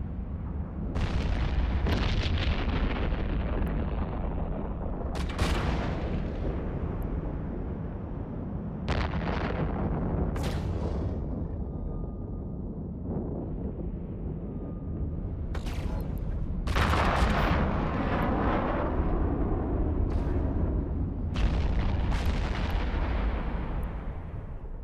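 Explosions boom and rumble in bursts.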